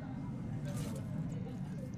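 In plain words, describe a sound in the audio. A pickaxe strikes wood with dull knocks.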